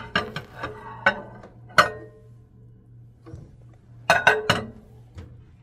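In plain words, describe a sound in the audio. A glass baking dish clinks against a glass turntable.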